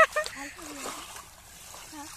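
Water splashes as a basket trap is dunked in shallow water.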